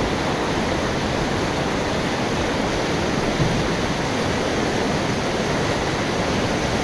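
Wind blows steadily outdoors, rumbling against a microphone.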